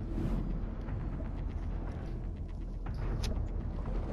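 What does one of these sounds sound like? A submarine's propellers churn underwater with a low rumble.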